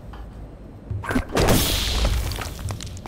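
A thrown object bursts with a thud into a hissing cloud of smoke.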